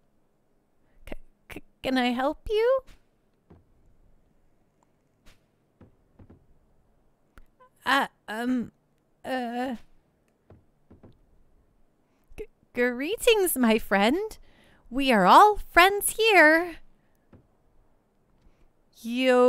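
A young man speaks close to a microphone, reading out lines in playful, exaggerated voices.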